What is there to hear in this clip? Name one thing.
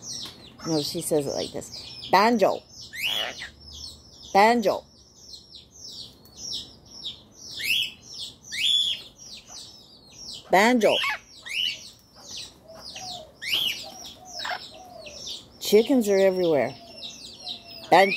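A parrot chirps and whistles in quick high bursts.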